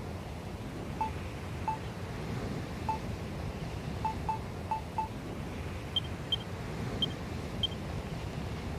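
Short menu beeps blip as items are chosen.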